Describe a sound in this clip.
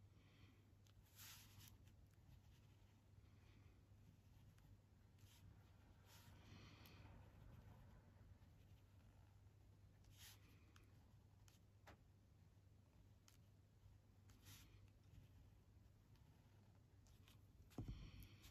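A pencil scratches softly across paper in quick strokes.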